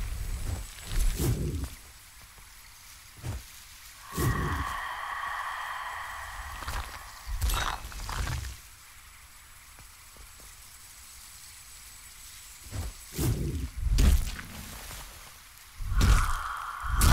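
Sword slashes whoosh and thud in short bursts.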